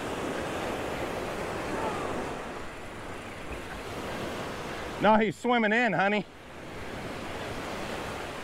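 Waves wash onto a beach in a steady rush.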